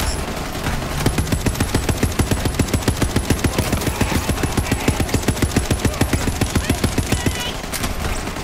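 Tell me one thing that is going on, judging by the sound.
A rapid-fire gun shoots in a fast, steady stream.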